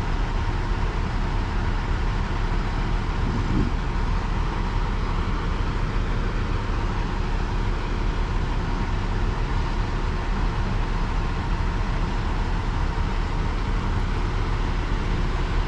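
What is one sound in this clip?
Wind rushes steadily across the microphone outdoors.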